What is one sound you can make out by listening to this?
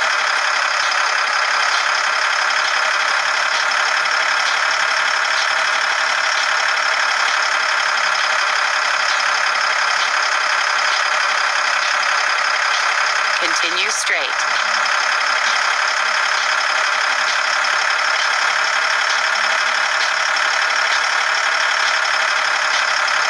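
A heavy truck engine drones steadily.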